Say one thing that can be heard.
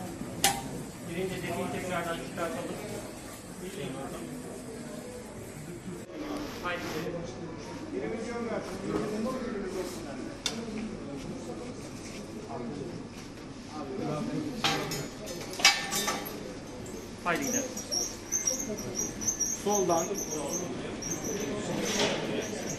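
A stretcher rattles as it rolls along a hard floor.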